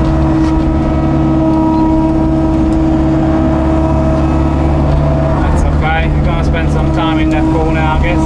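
An excavator's hydraulics whine as the arm moves.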